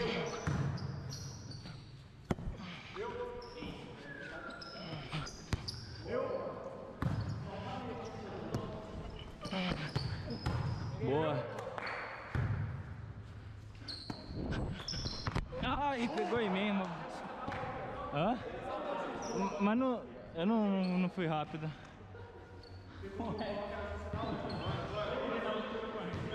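Men shout and call out to each other as they play.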